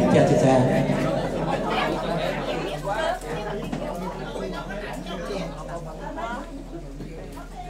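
A keyboard plays softly.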